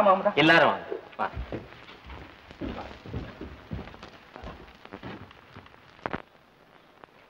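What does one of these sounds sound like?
Bodies thud and scuffle in a fight.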